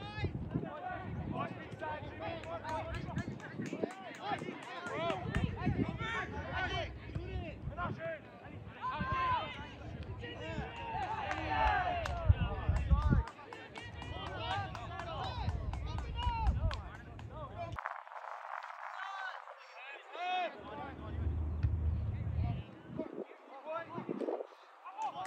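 Young players shout and call to each other outdoors.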